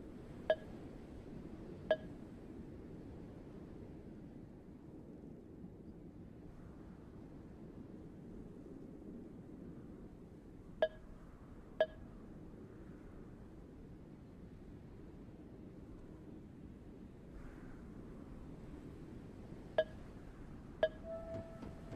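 A short bright chime sounds several times as menu choices are picked.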